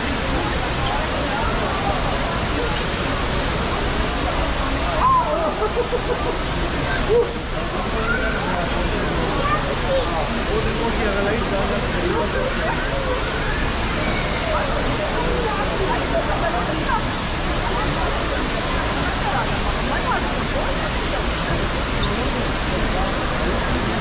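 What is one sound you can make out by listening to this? Water rushes steadily down a tall indoor waterfall.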